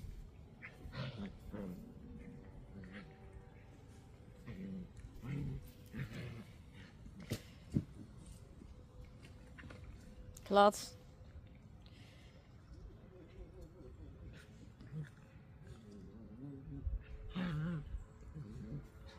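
Rough collie puppies growl playfully as they wrestle.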